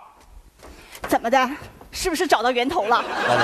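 A woman speaks with animation on a stage microphone.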